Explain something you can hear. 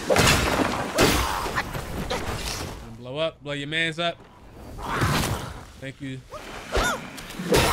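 Metal weapons clash with sharp ringing strikes.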